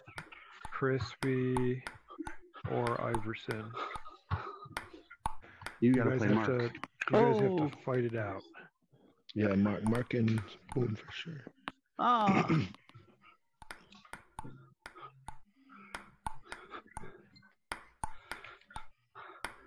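A table tennis ball clicks sharply back and forth off paddles and a table.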